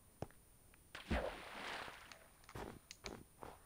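Water splashes and swirls in a game.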